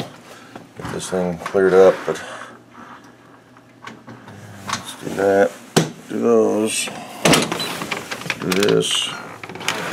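A man speaks calmly, close by, in short bursts.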